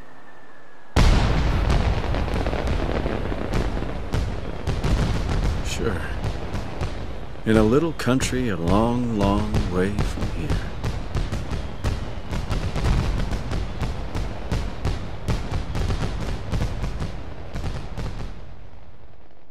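Fireworks boom and crackle in rapid bursts, then fade away.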